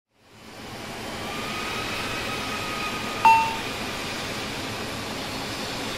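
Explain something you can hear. Jet engines whine steadily as an airliner idles.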